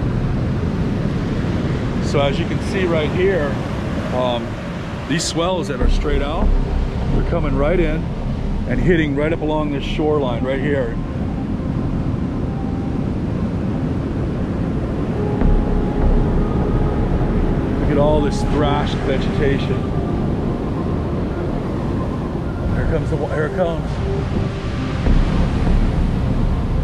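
Waves break and wash onto a beach.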